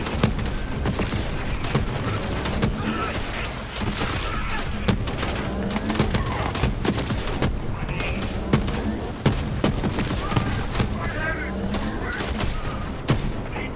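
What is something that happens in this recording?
Mech-mounted guns fire in rapid bursts.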